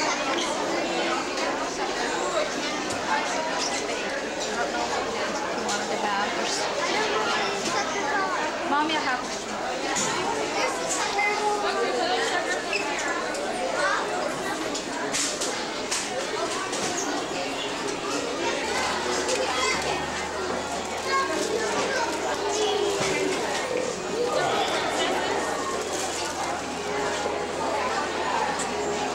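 A woman talks close by.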